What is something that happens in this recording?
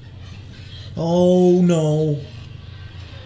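Another young man speaks loudly close by.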